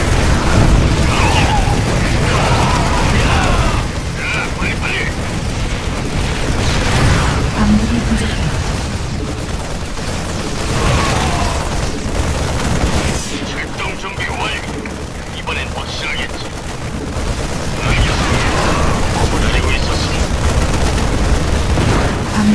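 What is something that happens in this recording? Gunfire rattles in rapid bursts during a battle.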